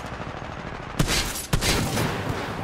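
A gun fires in sharp bursts.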